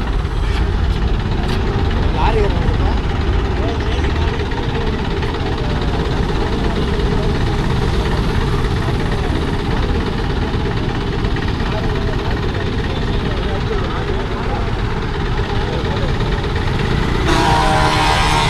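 A crowd of men chatters nearby.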